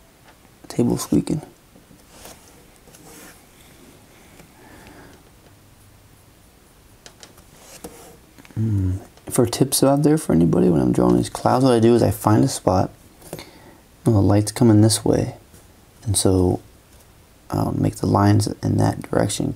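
A felt-tip pen taps and scratches softly on paper.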